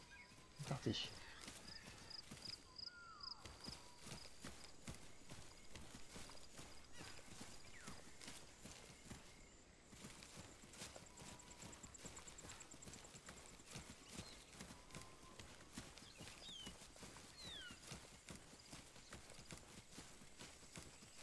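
Leafy plants rustle as someone pushes through them.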